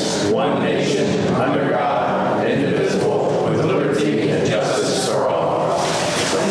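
A crowd of men and women speak together in unison.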